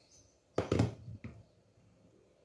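A rolling pin knocks and thumps against a hard counter.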